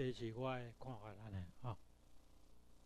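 An elderly man speaks into a handheld microphone, loud and close.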